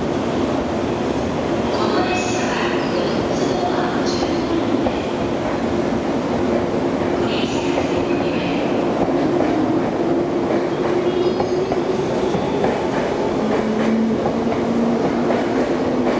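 A train pulls away and rolls along the rails.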